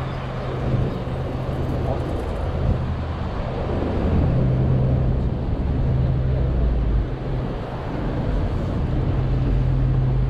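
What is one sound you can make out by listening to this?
Footsteps tap on a paved sidewalk.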